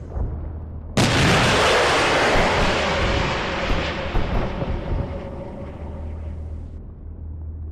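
A large explosion booms and rumbles away.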